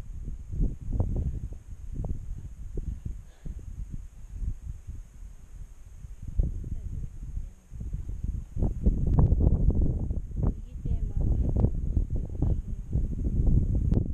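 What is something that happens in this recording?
Gusty wind buffets the microphone outdoors.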